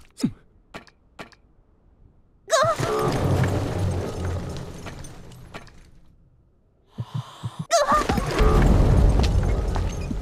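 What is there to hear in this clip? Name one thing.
Sharp hit sounds ring out in a video game.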